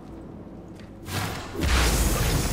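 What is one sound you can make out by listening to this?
Game spell effects burst and crackle loudly.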